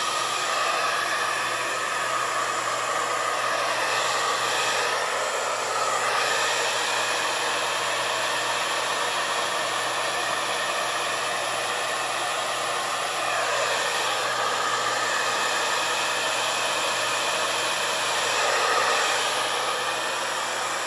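A hair dryer blows loudly and steadily close by.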